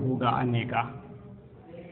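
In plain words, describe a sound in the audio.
A man speaks in a lecturing tone through a microphone.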